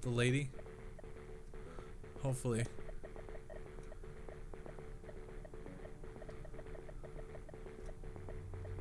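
Simple electronic arcade game music plays in a steady, repeating beeping pattern.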